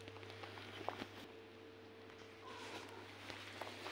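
A small ball rolls and bumps across a hard floor.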